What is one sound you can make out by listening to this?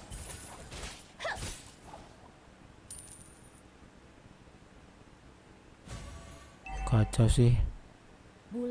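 Video game battle effects whoosh and clash.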